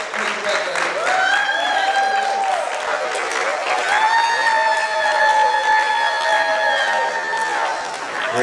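A woman sings long, held notes into a microphone over a loudspeaker, in a large echoing room.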